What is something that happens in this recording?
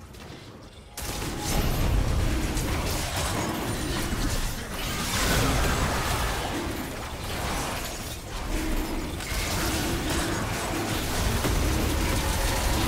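Video game spell effects whoosh and crash during a loud fight.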